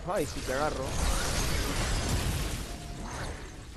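A fiery explosion roars.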